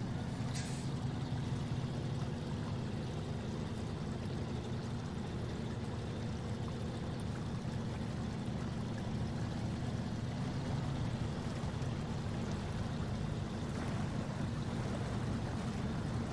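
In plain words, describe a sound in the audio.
A heavy truck engine rumbles steadily at low revs.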